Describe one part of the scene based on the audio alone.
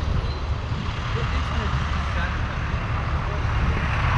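A box truck drives by close by.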